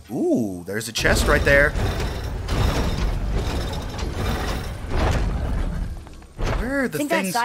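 A heavy stone wheel rumbles and grinds as it turns.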